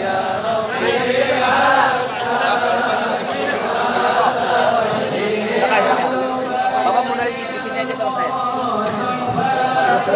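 A large crowd of men chants and shouts loudly in a large echoing hall.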